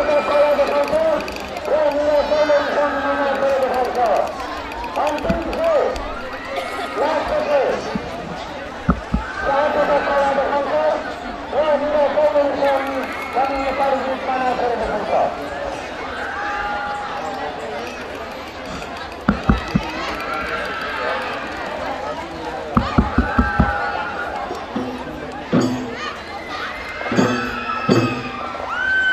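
A group of young men sings together through loudspeakers outdoors.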